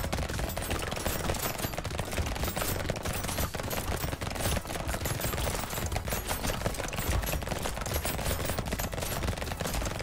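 Rapid video game gunfire crackles and pops.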